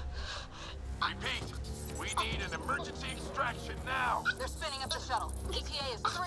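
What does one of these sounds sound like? A man speaks urgently over a radio.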